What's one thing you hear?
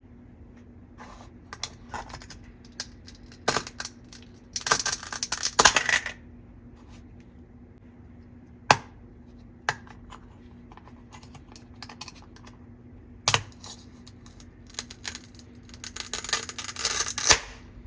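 A plastic toy knife scrapes and taps against toy food.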